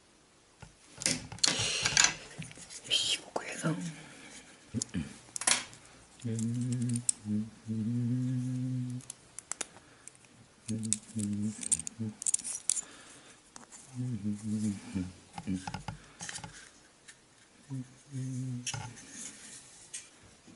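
Small wooden parts click and rustle as they are handled.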